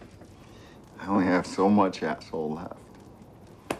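A man speaks softly and closely.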